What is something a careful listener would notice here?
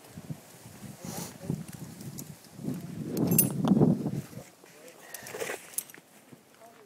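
Metal climbing gear clinks and rustles close by.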